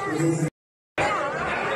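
A crowd of men and women chants together close by.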